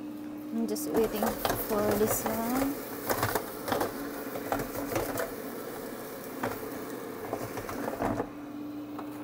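A metal fryer basket clatters and scrapes as it is handled.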